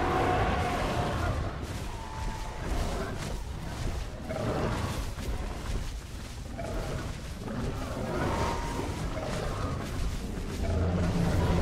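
Heavy thuds land as beasts bite and strike each other.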